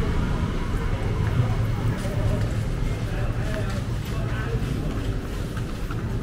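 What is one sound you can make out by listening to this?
Traffic hums steadily along a nearby street.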